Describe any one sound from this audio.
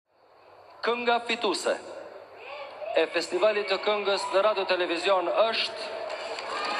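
A man speaks with animation into a microphone over a loudspeaker.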